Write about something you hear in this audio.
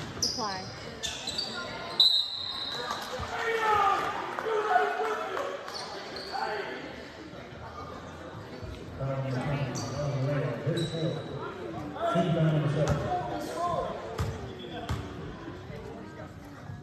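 Voices of a small crowd chatter and call out in a large echoing gym.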